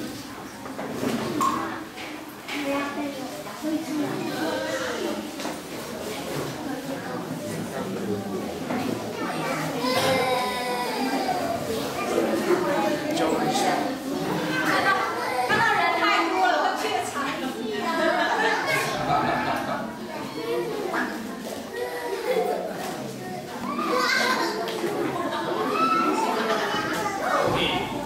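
Young children chatter and call out in a room with some echo.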